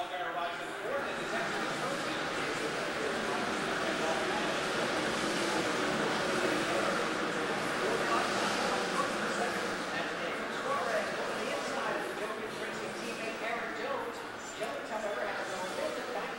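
People chatter nearby in an echoing room.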